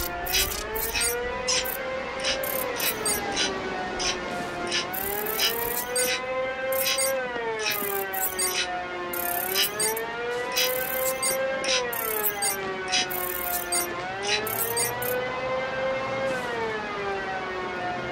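Short electronic clicks and beeps sound again and again.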